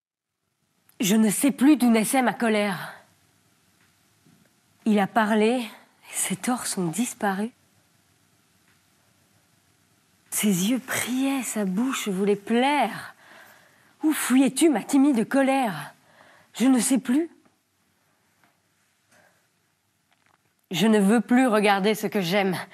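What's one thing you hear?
A young woman recites expressively, close to a microphone, pausing between phrases.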